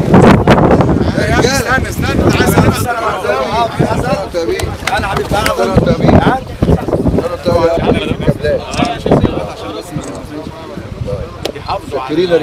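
Several men talk nearby at once.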